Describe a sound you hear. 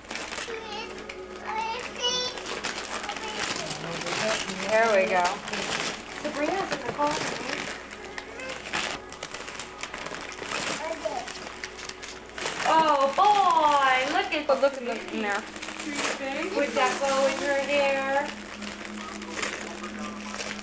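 Wrapping paper crinkles and rustles as it is torn.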